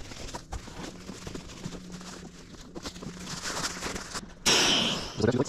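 A nylon sleeping bag rustles as it is stuffed into a sack.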